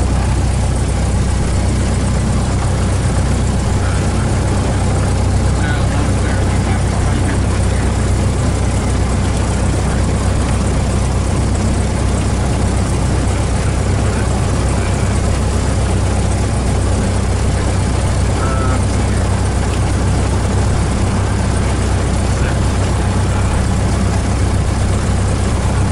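A small plane's propeller engine idles with a steady, loud drone.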